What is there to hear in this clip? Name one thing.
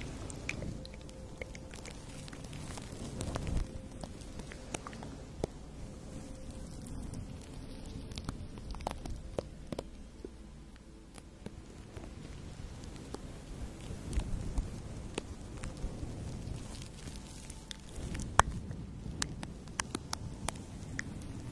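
Soft brushes sweep and rustle close against a fluffy microphone cover.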